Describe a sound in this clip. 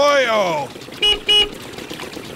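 A van horn beeps twice.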